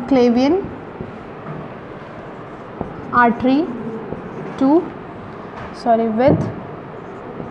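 A young woman speaks clearly in short bursts, close by.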